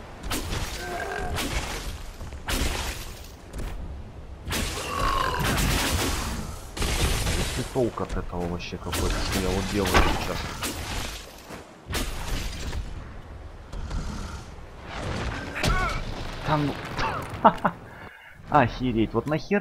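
A giant stomps heavily across rocky ground.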